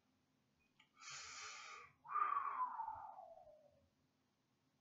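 A man speaks briefly and breathily, close to the microphone.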